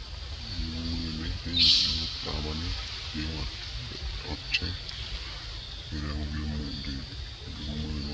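A small monkey splashes through shallow water.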